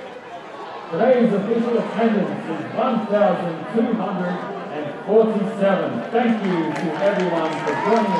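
A man speaks firmly and close through a microphone.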